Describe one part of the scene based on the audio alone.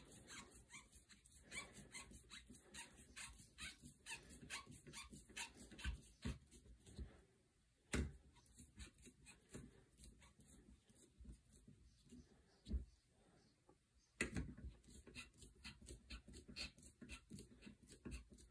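A screwdriver turns a screw into a rubber pad with soft creaks and clicks.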